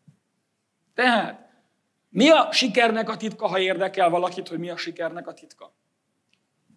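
A middle-aged man preaches with animation into a microphone.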